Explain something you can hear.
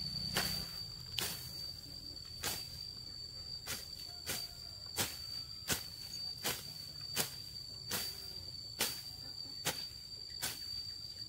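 A sickle swishes and slices through grass in quick, repeated strokes.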